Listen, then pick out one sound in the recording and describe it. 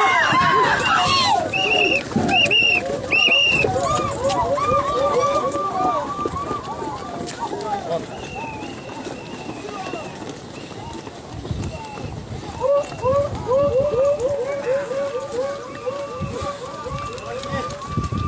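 Many bare feet run and stamp on a gravel road.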